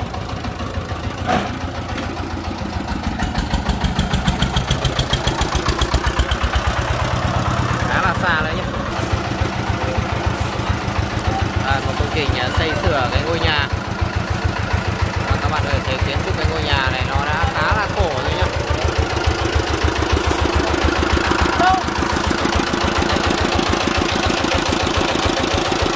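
A tractor engine chugs loudly and steadily close by.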